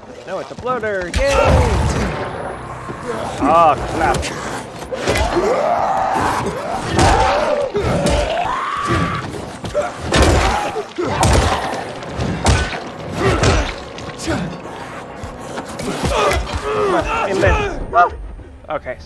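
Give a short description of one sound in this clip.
Heavy blows thud into flesh.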